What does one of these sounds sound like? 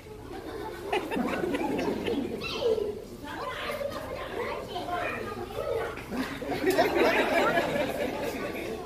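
A crowd of children chatter and shout excitedly.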